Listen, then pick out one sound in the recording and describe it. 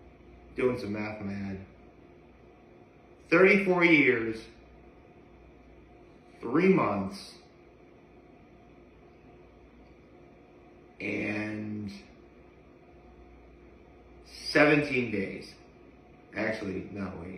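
A young man speaks calmly and close by, in short phrases with pauses.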